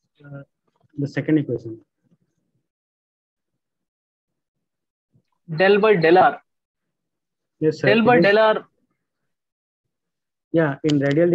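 A man speaks calmly over an online call, in short bursts.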